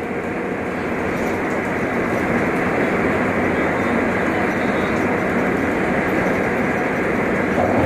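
A large vehicle's engine drones steadily.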